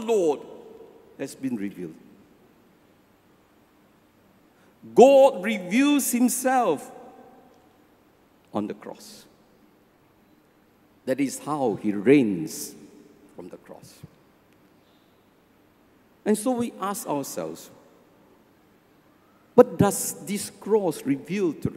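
An elderly man speaks emphatically into a microphone, with pauses, in an echoing hall.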